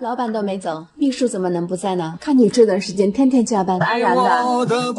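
A young woman speaks in a complaining tone, close by.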